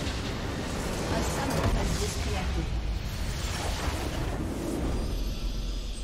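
Magic blasts and explosions crackle in a fast game battle.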